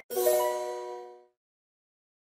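A bright, cheerful jingle plays and fades.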